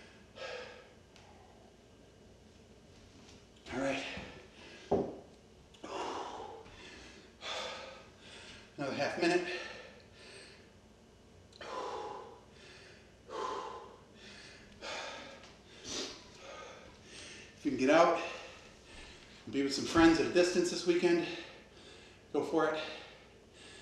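A middle-aged man talks calmly to the room, with a slight echo.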